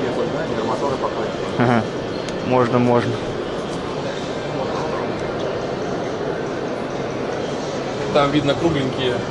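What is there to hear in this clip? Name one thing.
Steady background noise fills a large echoing hall.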